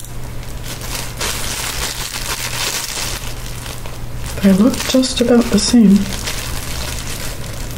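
Plastic gloves crinkle as a woman handles food.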